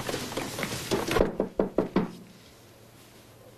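A young man knocks on a door.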